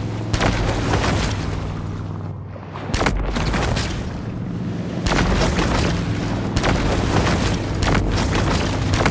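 Water splashes and churns as a shark swims fast through it.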